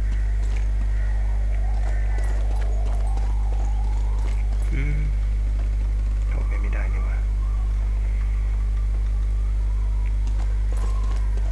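Footsteps run on stone paving.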